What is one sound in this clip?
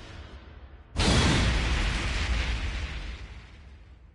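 A loud crash bursts out and rumbles as it fades.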